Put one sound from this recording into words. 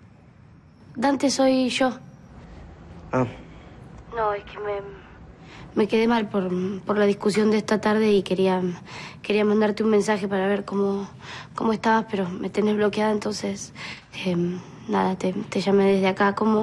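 A young woman talks on a phone nearby, calmly and then with more feeling.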